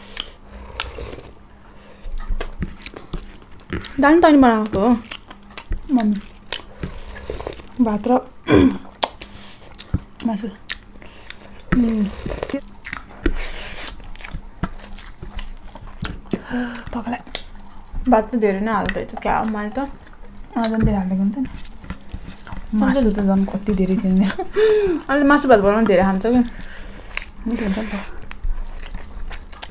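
Two young women chew and smack their lips close to a microphone.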